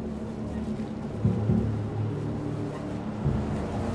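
A small electric car hums as it drives along a road.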